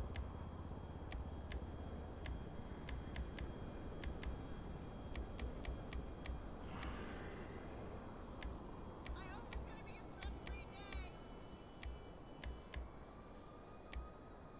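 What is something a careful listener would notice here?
Short sharp menu clicks tick repeatedly at an uneven pace.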